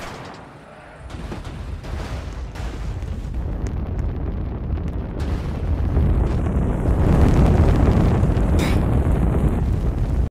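A heavy rushing roar grows louder.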